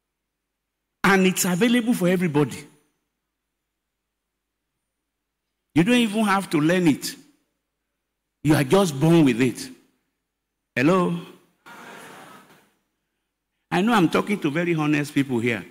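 An older man preaches forcefully into a microphone over loudspeakers, in bursts with pauses.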